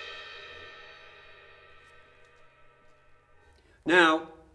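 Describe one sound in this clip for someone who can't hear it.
A cymbal rings out and slowly fades away.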